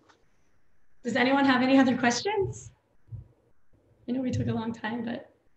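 A young woman speaks cheerfully through an online call microphone.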